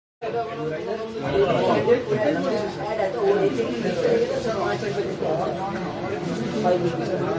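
A crowd of young men talk loudly over each other close by.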